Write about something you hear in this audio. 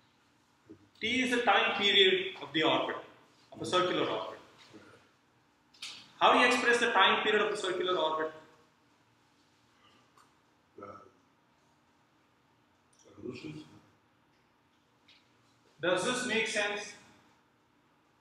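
A man speaks calmly, explaining in short bursts with pauses.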